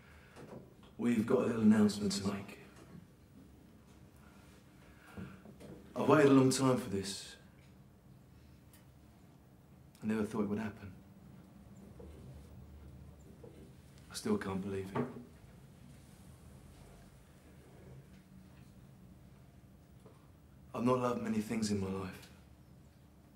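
A man speaks slowly into a microphone, his voice carried through a loudspeaker, with pauses between phrases.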